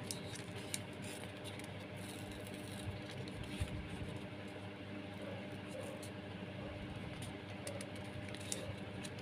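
Paper ribbon rustles and crinkles as hands fold it.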